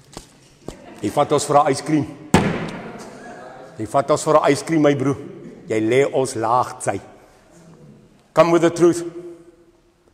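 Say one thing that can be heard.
A middle-aged man speaks with animation nearby, in a room with a slight echo.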